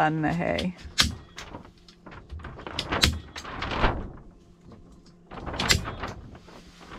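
A staple gun clicks sharply several times.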